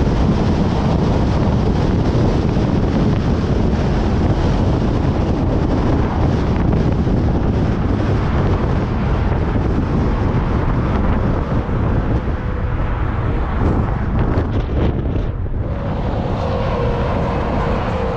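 Wind buffets loudly and steadily outdoors.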